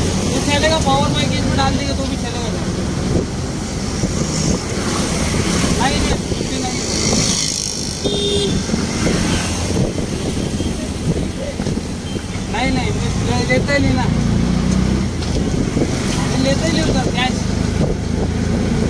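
An auto-rickshaw engine rumbles and putters steadily.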